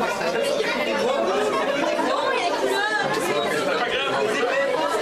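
A crowd of children and adults chatters in an echoing hall.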